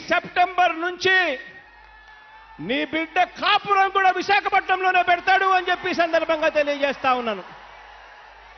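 A man speaks forcefully into a microphone over loudspeakers, his voice echoing.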